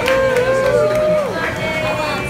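A group of adults sing together.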